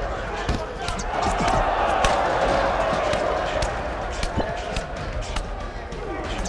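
Punches land with heavy, sharp thuds.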